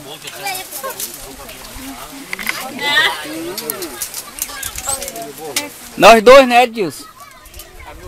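Young girls chatter and talk nearby.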